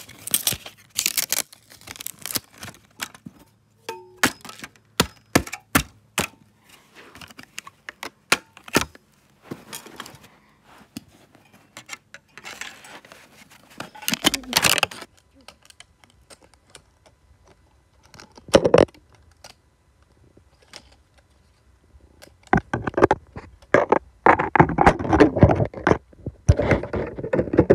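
Broken plastic pieces clatter and scrape on a carpet.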